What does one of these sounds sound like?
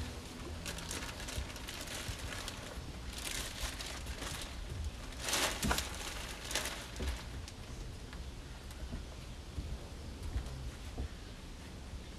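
Boots thud on wooden decking.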